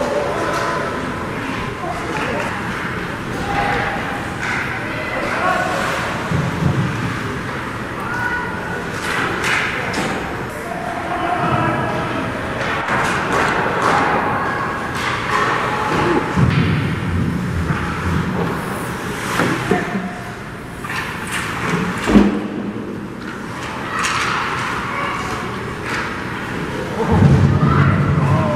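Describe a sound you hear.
Sounds echo around a large, hard indoor hall.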